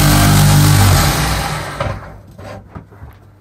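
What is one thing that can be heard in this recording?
A belt grinder motor winds down and stops.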